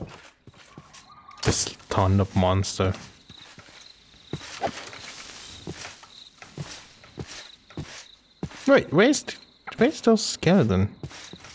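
Footsteps pad softly over grass.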